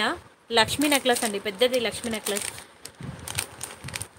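Plastic bags crinkle as they are handled.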